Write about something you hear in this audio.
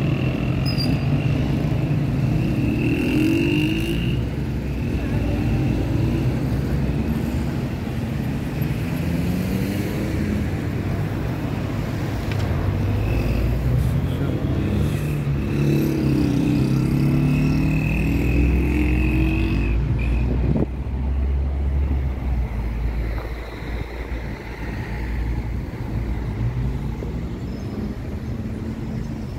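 City traffic hums steadily outdoors.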